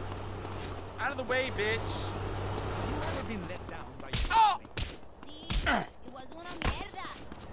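Men shout and grunt during a fight.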